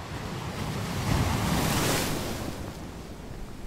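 A large wave breaks with a loud rushing roar.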